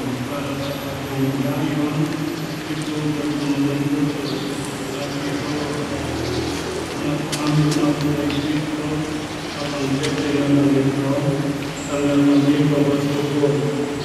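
An elderly man reads aloud steadily through a microphone in a large echoing hall.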